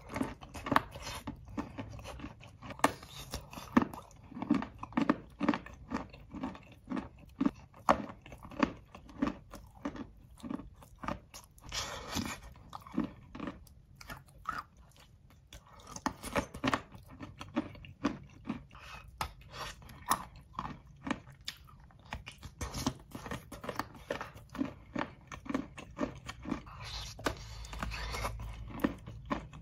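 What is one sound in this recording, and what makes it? Brittle chalky crust cracks and crunches close by as it is bitten.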